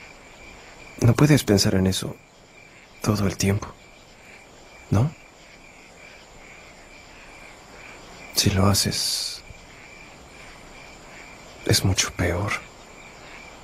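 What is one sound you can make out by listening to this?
A young man speaks quietly, in short bursts.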